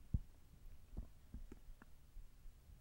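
Small plastic items tap lightly on a table.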